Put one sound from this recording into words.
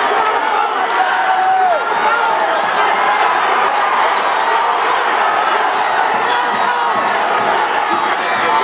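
A large crowd cheers and shouts loudly in an echoing gym.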